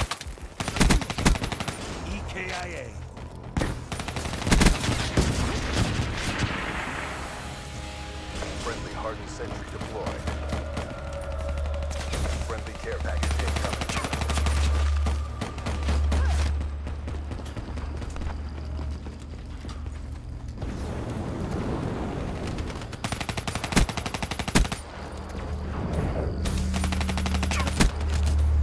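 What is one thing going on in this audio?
Gunfire crackles in sharp, rapid bursts.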